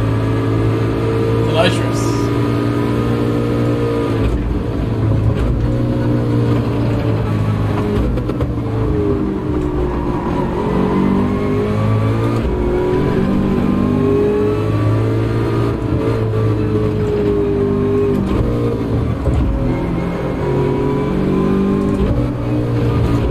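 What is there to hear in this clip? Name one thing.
A racing car engine roars and revs up and down through gear changes.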